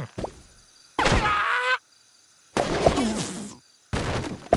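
Wooden blocks crash and break apart.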